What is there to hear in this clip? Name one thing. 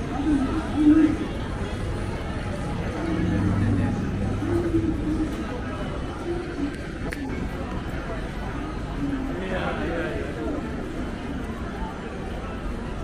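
Pedestrians' voices murmur and chatter nearby outdoors.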